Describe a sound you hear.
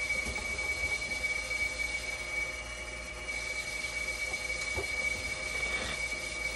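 A dialysis machine runs with a steady high whine.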